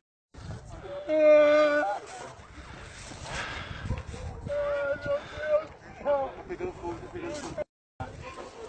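A man shouts excitedly outdoors.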